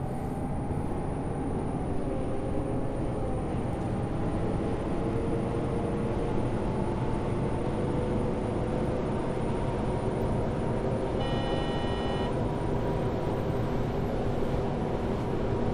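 A bus engine hums and whines steadily while driving.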